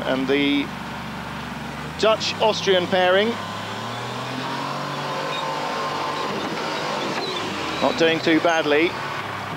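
An off-road truck's engine roars as it climbs a steep grassy slope.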